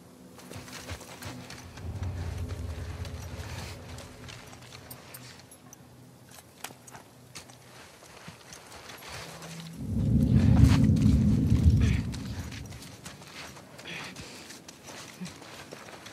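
A person crawls through wet grass with soft rustling.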